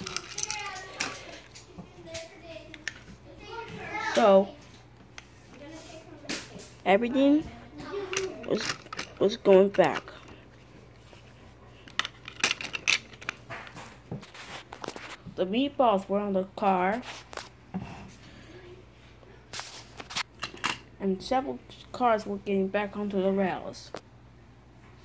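Plastic toy pieces clatter and knock together as they are handled.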